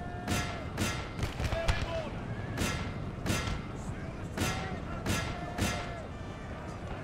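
Muskets fire in sharp volleys.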